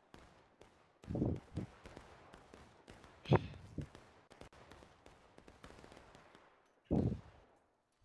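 Rifle shots crack and boom nearby.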